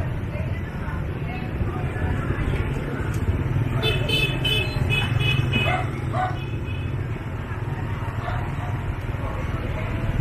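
Motorbike engines hum steadily along a busy street.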